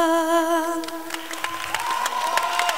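A boy sings a long held note through a microphone.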